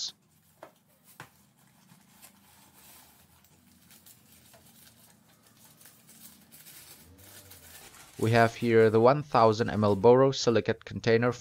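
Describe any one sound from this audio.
Paper crinkles and rustles as it is unwrapped.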